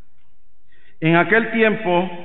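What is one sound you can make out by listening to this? A man chants slowly through a microphone in an echoing hall.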